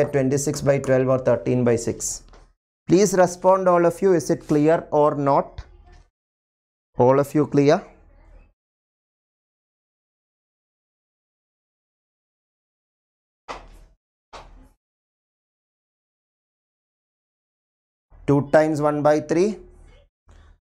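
A man speaks with animation into a microphone, close by.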